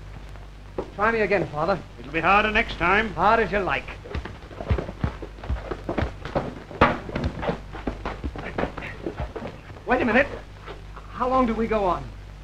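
A man shouts loudly and excitedly.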